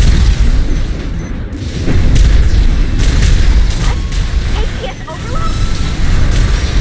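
Thrusters roar and hiss.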